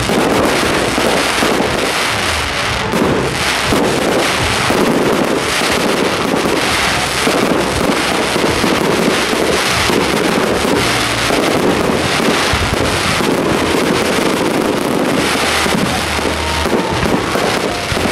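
Fireworks boom with deep thuds.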